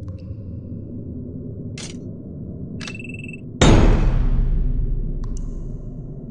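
Game menu buttons click with short chimes.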